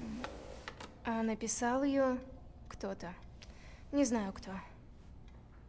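A young woman speaks softly and quietly nearby.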